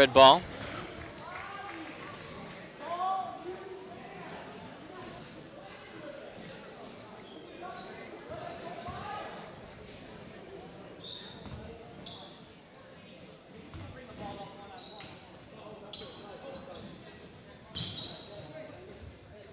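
Men shout and call out loudly in a large echoing gym.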